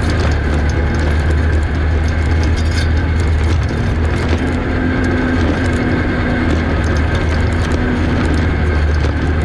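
Wind blows hard and rumbles across open ground.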